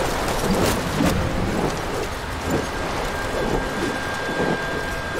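Strong wind roars steadily.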